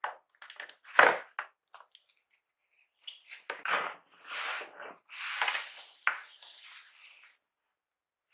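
Cardboard flaps scrape and thump as they are folded shut.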